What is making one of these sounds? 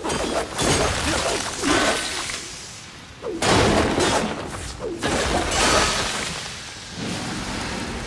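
Heavy blows land with loud whooshes and crashes.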